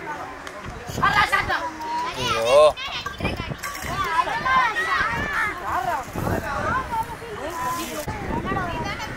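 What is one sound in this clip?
Young boys shout and call out excitedly outdoors.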